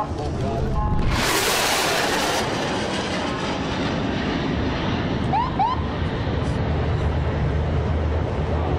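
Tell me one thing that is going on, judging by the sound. A jet plane roars loudly overhead.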